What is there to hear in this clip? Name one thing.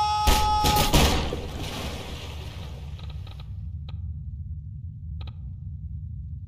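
Objects splash into water.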